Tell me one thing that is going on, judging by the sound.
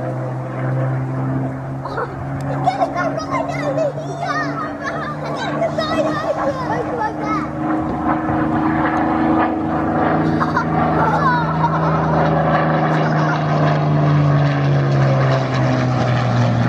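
A propeller plane's engine drones steadily overhead, growing louder as it passes.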